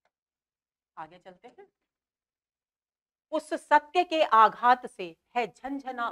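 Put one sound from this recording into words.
A woman speaks calmly, as if teaching, close to a microphone.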